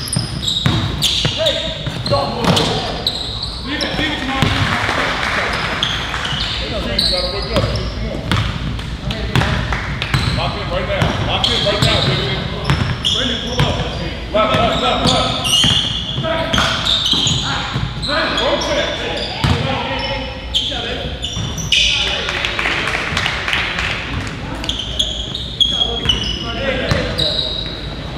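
A basketball bounces on a hard floor with loud thuds.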